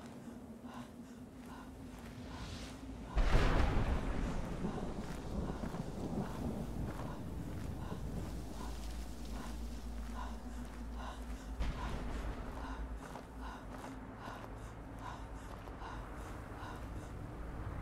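Footsteps crunch steadily on gravelly ground.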